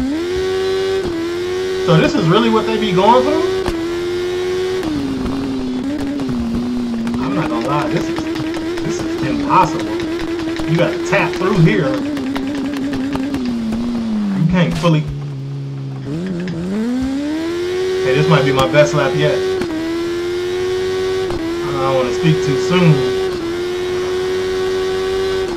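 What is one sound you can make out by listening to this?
A motorcycle engine whines steadily, rising and falling in pitch as it shifts gears.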